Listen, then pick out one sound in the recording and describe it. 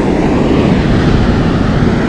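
Footsteps crunch softly on sand.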